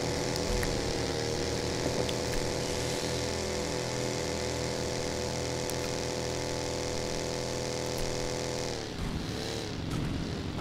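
A buggy engine drones steadily, then drops and revs again.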